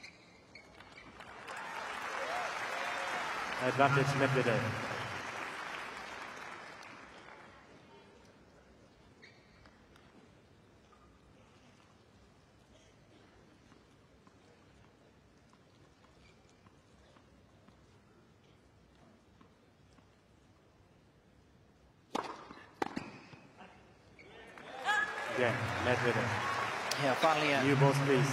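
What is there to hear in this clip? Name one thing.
A large crowd applauds and cheers loudly.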